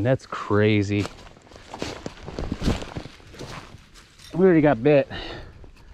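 Dry leaves crunch underfoot as a man walks.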